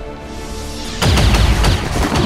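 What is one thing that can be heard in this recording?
A heavy gun fires a loud blast.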